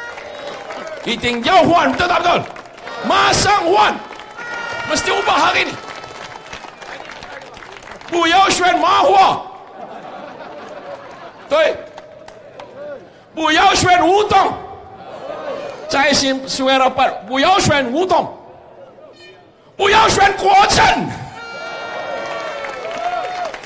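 A man speaks with animation into a microphone, heard through loudspeakers outdoors.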